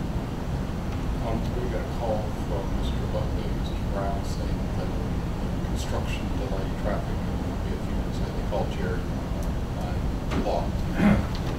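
A man speaks at a distance in a room.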